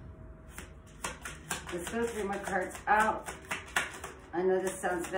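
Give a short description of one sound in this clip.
Cards flick and shuffle in a woman's hands.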